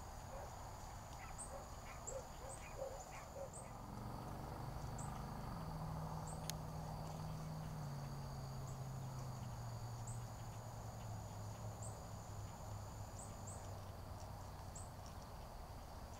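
Deer munch quietly on grass.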